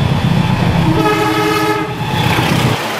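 A train horn blares.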